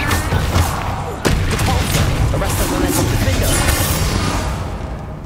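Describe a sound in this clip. Magic spells crackle and burst loudly.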